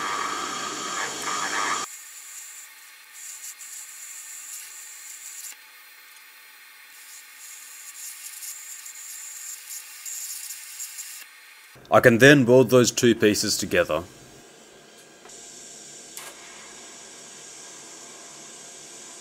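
An electric welding arc hisses and buzzes steadily.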